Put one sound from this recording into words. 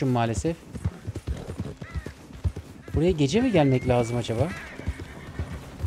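A horse's hooves thud steadily on the ground.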